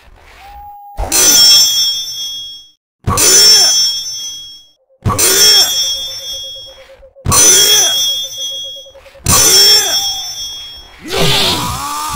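Steel katana blades clash with a sharp, ringing clang.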